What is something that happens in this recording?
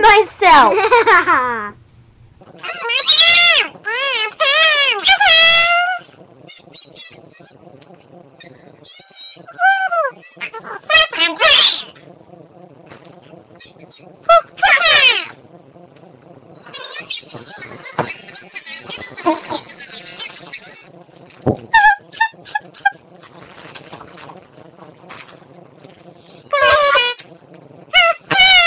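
Young girls shout and squeal excitedly close to a microphone.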